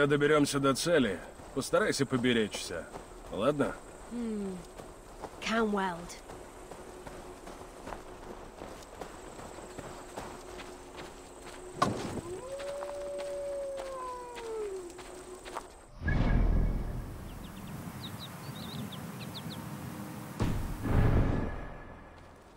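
Footsteps tread on a dirt path.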